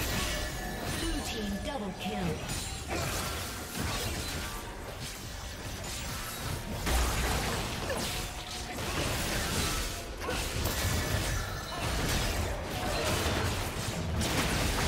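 Video game combat sound effects of slashing blades and spell blasts play.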